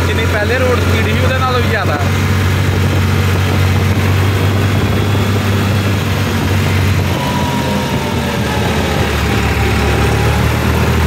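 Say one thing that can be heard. A tractor's diesel engine chugs steadily close by.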